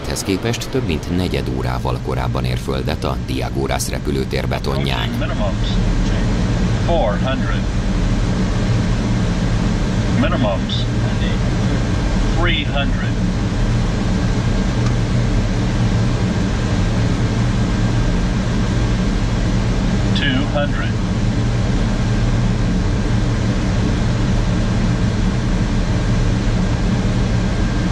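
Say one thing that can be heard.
A steady, loud engine drone fills an aircraft cabin.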